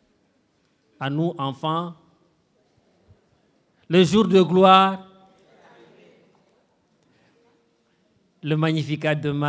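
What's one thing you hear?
A man speaks slowly and expressively into a microphone over a loudspeaker, with pauses between phrases.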